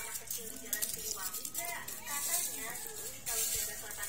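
Dry shallots rustle and clatter as a hand stirs through them.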